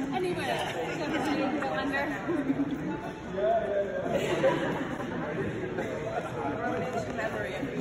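Women talk and call out excitedly in a large echoing hall.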